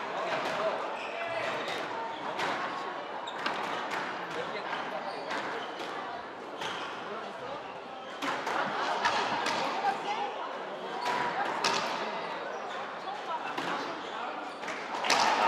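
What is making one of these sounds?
A squash ball smacks sharply against the walls again and again.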